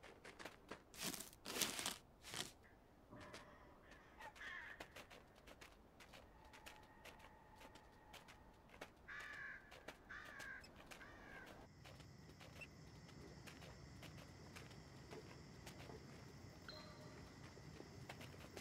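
A small animal's footsteps patter quickly over grass.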